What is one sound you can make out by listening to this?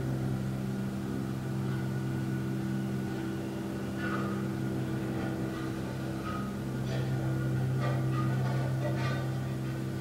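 A man hums a low, steady drone close by.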